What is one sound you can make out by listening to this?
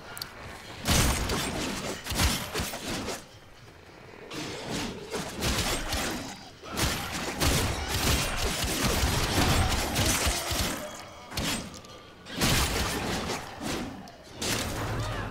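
Rapid gunfire and energy blasts crackle in loud bursts.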